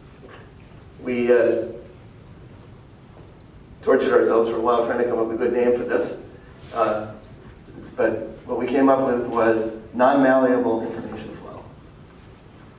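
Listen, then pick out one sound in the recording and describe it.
A man lectures calmly.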